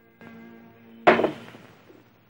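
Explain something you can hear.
A glass bottle is set down on a table with a knock.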